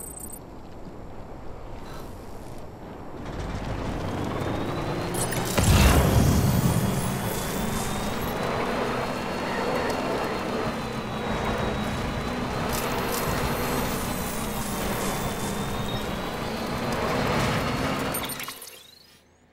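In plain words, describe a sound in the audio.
A truck engine hums and revs as it drives.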